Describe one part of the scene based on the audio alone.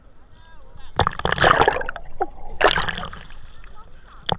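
Water rushes and bubbles, heard muffled underwater.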